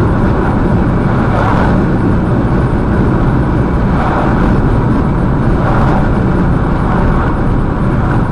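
Passing cars whoosh by one after another.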